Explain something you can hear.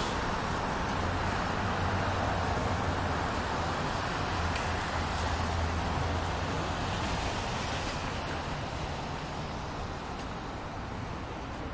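City traffic rumbles by outdoors.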